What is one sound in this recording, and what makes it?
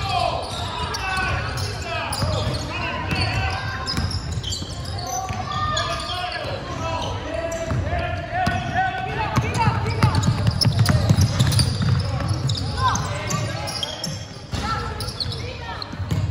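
Teenage boys call out to each other in a large echoing hall.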